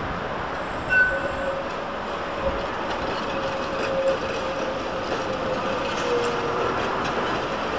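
Tram wheels squeal faintly on a curve.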